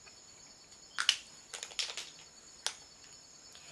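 Plastic lipstick cases click and tap in hands.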